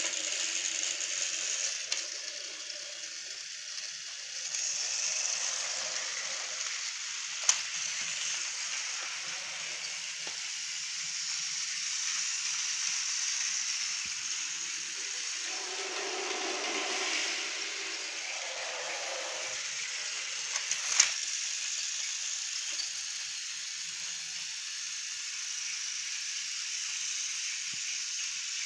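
Battery-powered toy trains whir steadily along plastic tracks.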